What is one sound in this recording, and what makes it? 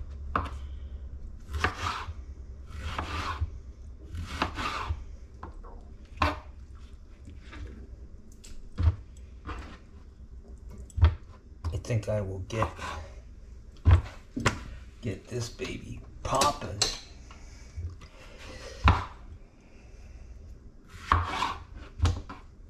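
A knife knocks against a cutting board.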